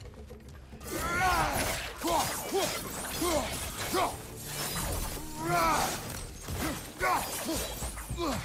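Weapon blows strike with heavy thuds.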